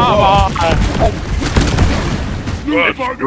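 Gunfire from a game blasts in rapid bursts.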